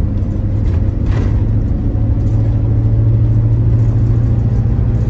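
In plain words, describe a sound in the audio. A vehicle's engine drones steadily from inside the cab.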